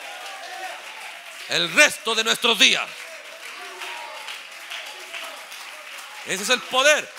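A crowd of young women claps hands.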